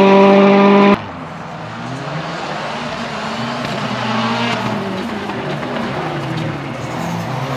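A rally car's engine revs through a tight corner.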